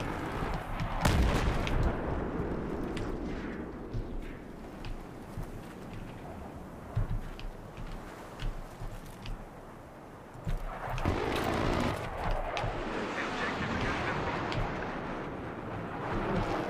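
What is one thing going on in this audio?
Distant explosions boom and rumble.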